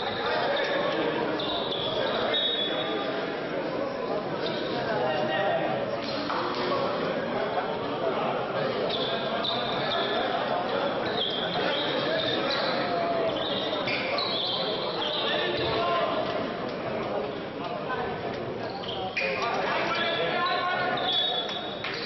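A group of players and coaches talk and shout in a large echoing hall.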